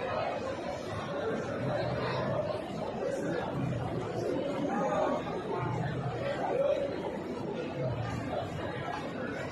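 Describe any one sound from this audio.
A large crowd of men chants and murmurs together in a big echoing hall.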